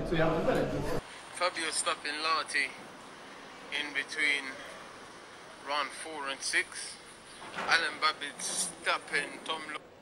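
A man talks emphatically through a phone's small speaker.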